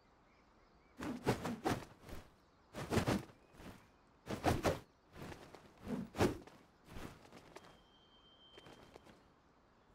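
Swords swish through the air in quick strokes.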